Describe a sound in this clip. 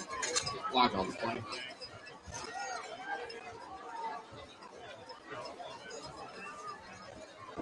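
A crowd murmurs and chatters outdoors at a distance.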